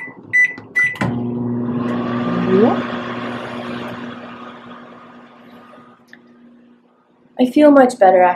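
A microwave oven hums steadily.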